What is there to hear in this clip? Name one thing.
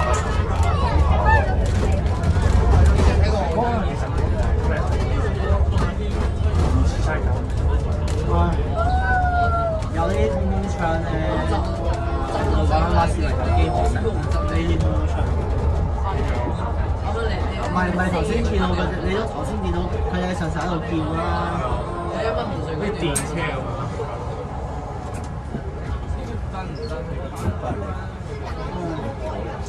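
Young people chatter nearby inside the bus.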